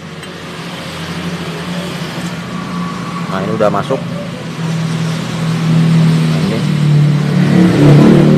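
Metal engine parts click and rattle softly as they are moved by hand.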